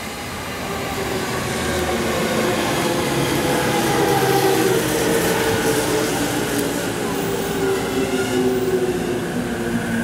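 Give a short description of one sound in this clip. Train wheels squeal with a high steady whine as the train slows.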